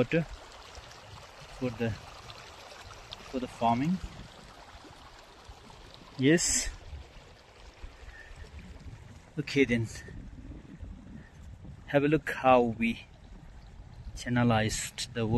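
A small stream trickles over stones.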